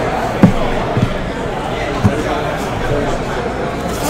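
A cardboard box rustles as it is handled.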